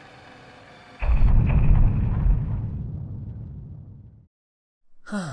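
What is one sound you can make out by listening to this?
A deep fiery boom rumbles and slowly fades.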